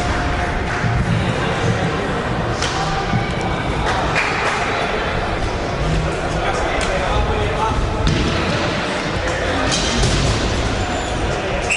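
Roller skates rumble and scrape across a wooden floor.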